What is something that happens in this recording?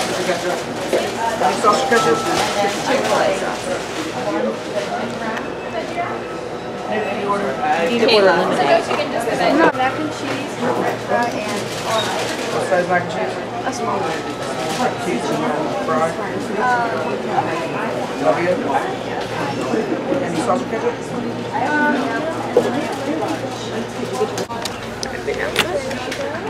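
Crowd chatter murmurs in an echoing room.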